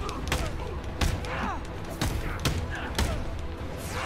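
Heavy punches land with dull thuds.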